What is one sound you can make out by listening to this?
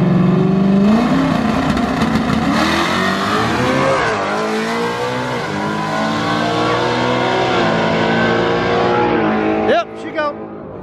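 A race car accelerates hard down the track and roars away.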